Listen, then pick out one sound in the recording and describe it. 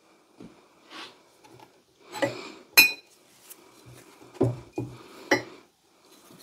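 Metal tools clink and rattle in a wooden box.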